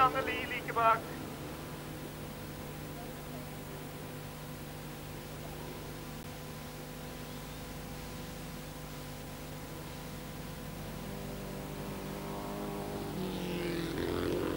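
Race car engines drone in the distance and grow louder toward the end.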